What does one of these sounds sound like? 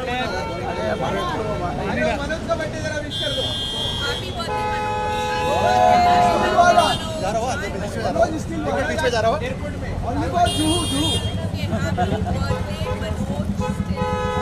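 Several men and women call out and chatter loudly nearby in a lively crowd.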